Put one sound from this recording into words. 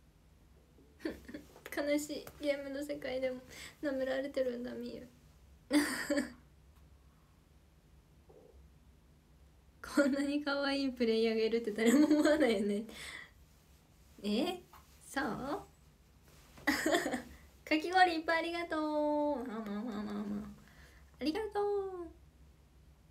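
A young woman talks brightly and close to a microphone, now and then laughing.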